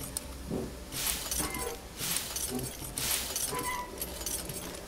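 Small objects rustle and clatter as they are grabbed.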